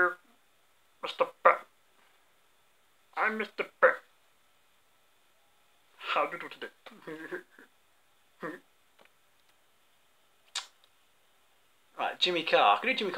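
A young man speaks casually into a nearby microphone, in short bursts with pauses.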